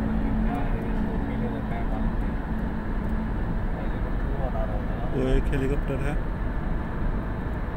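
A car engine hums steadily with road rumble from inside a moving vehicle.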